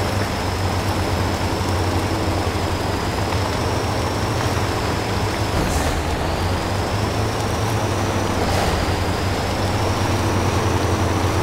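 A heavy truck engine rumbles steadily as the truck crawls along.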